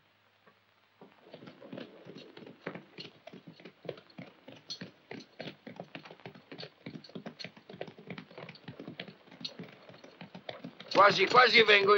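A horse gallops with rapid hoofbeats.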